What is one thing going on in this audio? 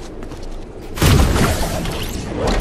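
A launch pad bursts with a loud whoosh.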